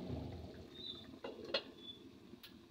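A glass lid clinks onto a pot.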